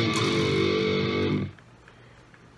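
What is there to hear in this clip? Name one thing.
A steady musical tone plays from laptop speakers.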